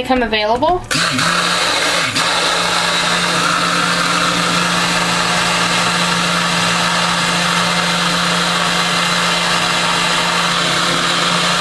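A hand blender whirs steadily while blending liquid.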